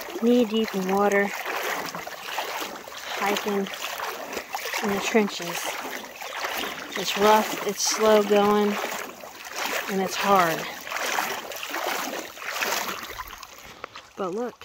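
Feet splash and slosh through shallow water.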